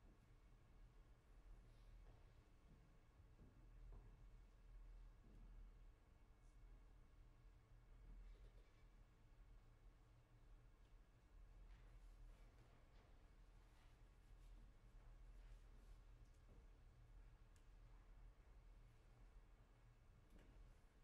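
A grand piano plays softly in a large, reverberant hall.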